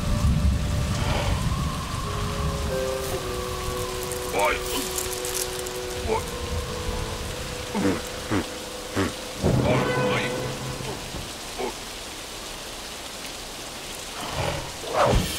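A cartoon bear whimpers and yelps in a high, comic voice.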